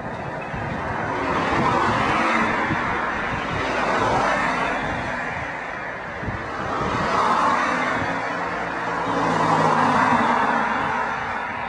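Cars drive past close by, one after another, their noise swelling and fading.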